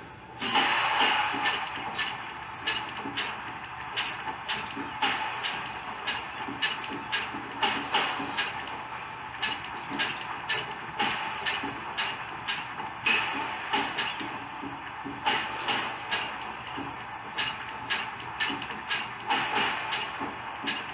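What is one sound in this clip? A crowd cheers steadily through a television's speakers.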